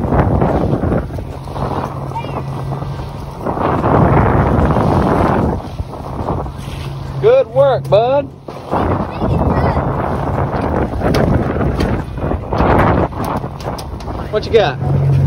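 Wind rushes across the microphone outdoors on open water.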